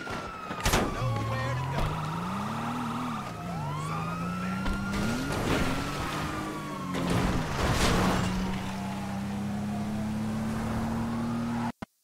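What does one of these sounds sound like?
A car engine revs and roars as the car drives off.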